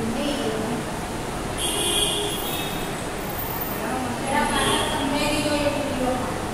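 A woman speaks calmly and clearly, as if teaching.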